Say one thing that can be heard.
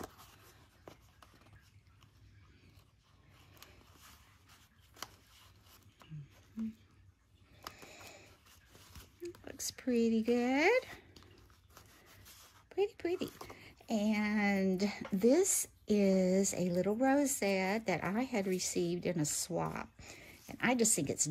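Paper crinkles and rustles softly as it is handled.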